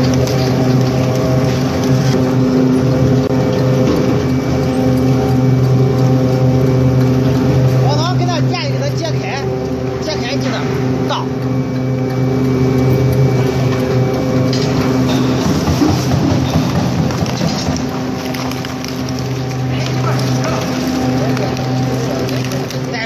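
A shredder's motor hums loudly and steadily.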